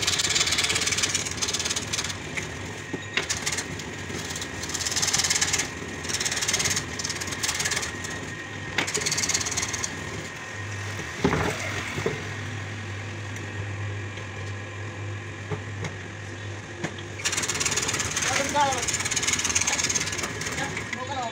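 A band saw whirs as it cuts through wood.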